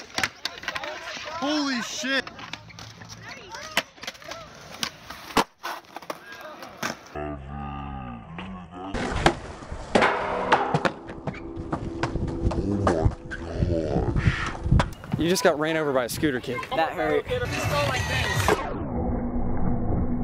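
Skateboard wheels roll and clatter on concrete.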